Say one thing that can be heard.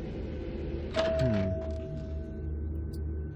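An elevator bell chimes once with a steady ring.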